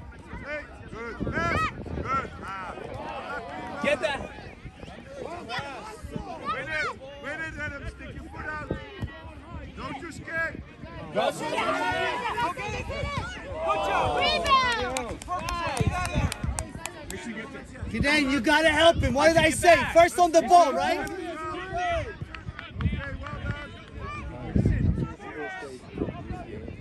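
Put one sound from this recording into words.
Spectators shout and cheer outdoors across a wide field.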